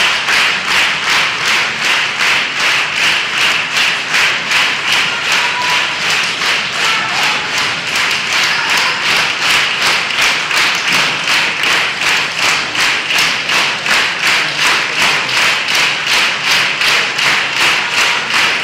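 An audience claps together in a steady, fast rhythm in a large echoing hall.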